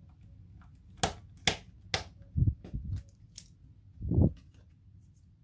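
Fingers knock and tap against metal parts close by.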